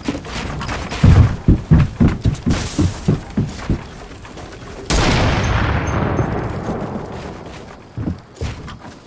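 Wooden ramps and walls are built with quick, heavy knocking thuds.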